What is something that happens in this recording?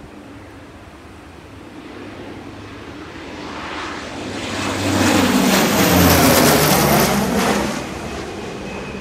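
A propeller plane roars low overhead and fades away.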